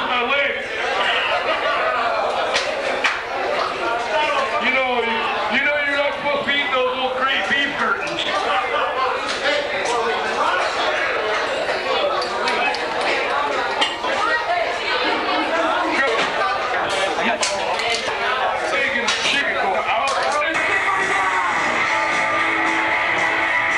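A crowd chatters loudly all around in a noisy echoing room.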